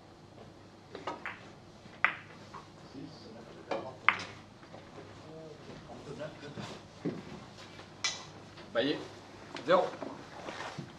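Billiard balls click against each other and thud off the cushions.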